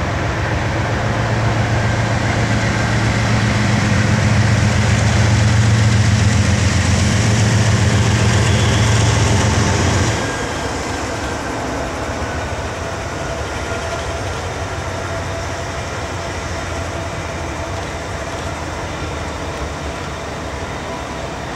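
A train's wheels roll and clatter steadily over a steel bridge.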